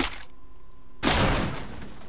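A knife swishes through the air.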